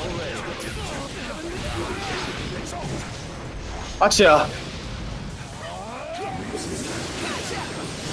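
Blasts and heavy impacts crash in a video game fight.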